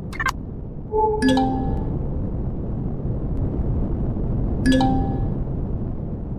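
A short electronic chime sounds as a menu closes.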